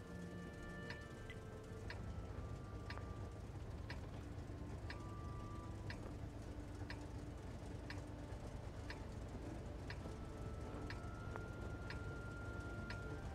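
A countdown timer ticks once every second.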